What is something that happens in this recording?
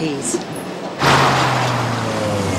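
A car engine hums as the car drives along.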